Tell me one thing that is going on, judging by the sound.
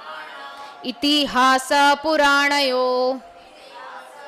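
A young woman sings loudly and with feeling into a microphone.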